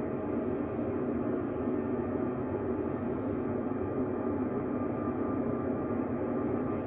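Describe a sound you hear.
Jet engines roar steadily, heard from inside an aircraft.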